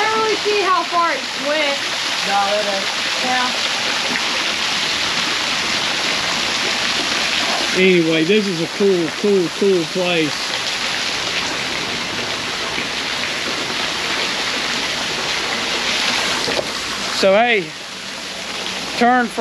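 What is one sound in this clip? An older man talks with animation close by.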